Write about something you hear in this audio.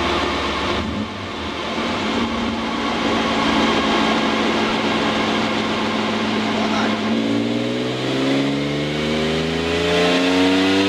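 A car engine idles, then revs up again with a rising whine.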